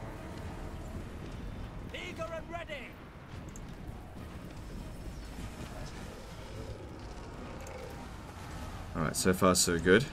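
A distant battle rumbles with the low din of clashing troops.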